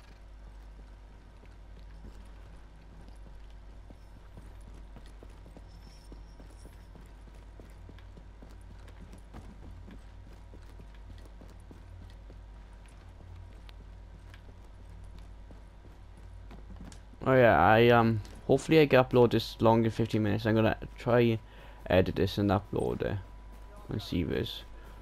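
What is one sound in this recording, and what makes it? Footsteps tread softly across a floor.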